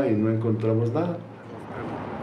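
A middle-aged man speaks calmly and close by.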